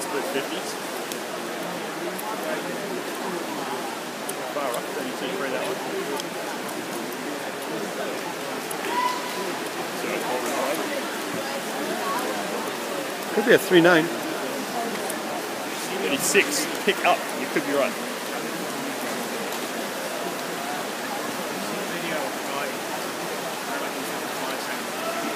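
Swimmers splash through the water doing backstroke.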